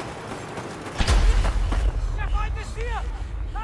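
Strong wind roars in a snowstorm.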